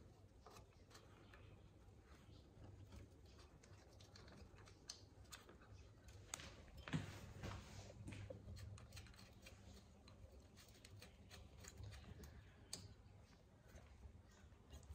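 Plastic parts click and rattle under handling.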